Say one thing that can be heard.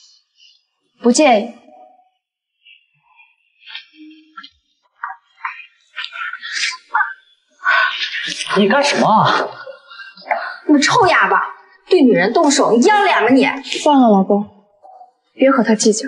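A woman speaks nearby with animation.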